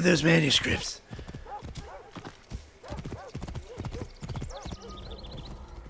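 Horse hooves pound on a dirt path at a gallop.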